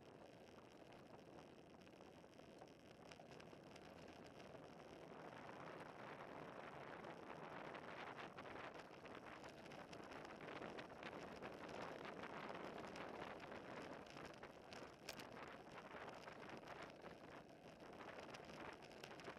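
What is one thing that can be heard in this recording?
Wind rushes steadily past the microphone, growing louder.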